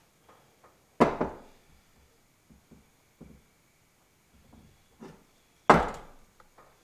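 Heavy metal parts clunk down onto a metal bench.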